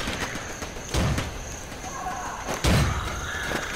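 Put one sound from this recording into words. A pistol fires single shots.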